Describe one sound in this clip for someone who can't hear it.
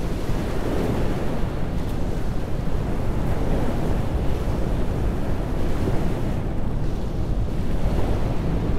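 Wind blows hard outdoors, buffeting loudly.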